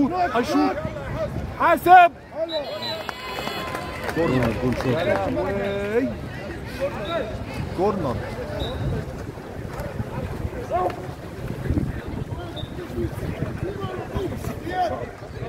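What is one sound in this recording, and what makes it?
Young men shout to each other across an echoing pool.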